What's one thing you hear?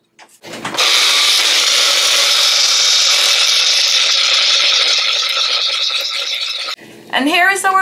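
A small electric blender whirs loudly, chopping and pureeing food.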